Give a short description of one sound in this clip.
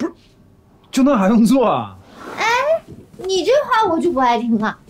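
A young woman exclaims sharply, close by.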